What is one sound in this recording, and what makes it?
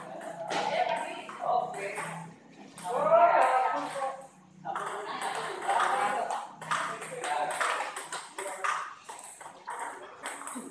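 Men talk and call out nearby in an echoing hall.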